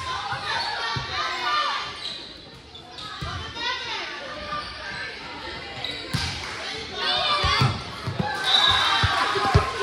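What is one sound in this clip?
A volleyball is struck with a sharp thump.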